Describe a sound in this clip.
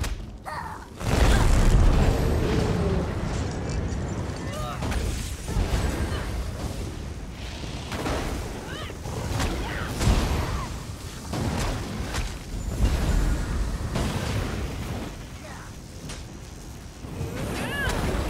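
Weapon blows strike with loud impacts.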